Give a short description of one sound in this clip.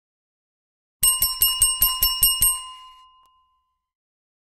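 A bell rings quickly and fades.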